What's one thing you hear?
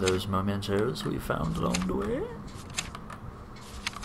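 A book cover flips open.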